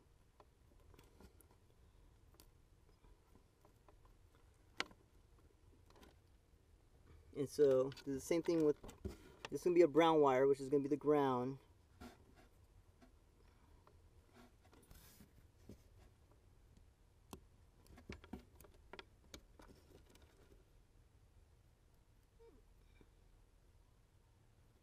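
Small plastic connectors click and cables rustle as they are handled close by.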